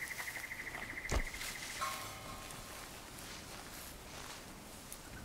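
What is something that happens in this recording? Footsteps rustle through leafy undergrowth.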